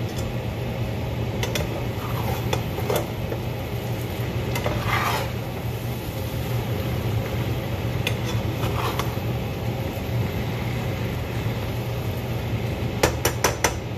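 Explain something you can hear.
A spoon scrapes and clacks against a frying pan.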